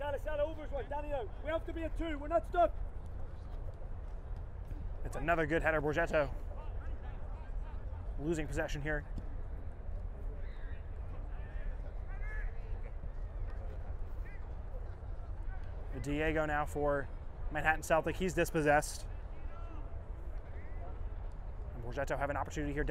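Young men shout and call out across an outdoor pitch.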